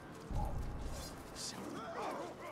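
A sword swings and strikes with a whoosh.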